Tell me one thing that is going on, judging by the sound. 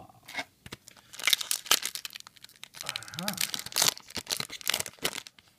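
A foil card wrapper crinkles and rustles as hands handle it.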